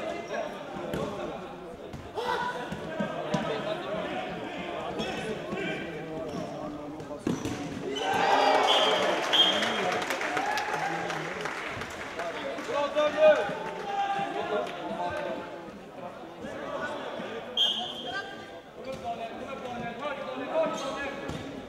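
A ball thumps as it is kicked.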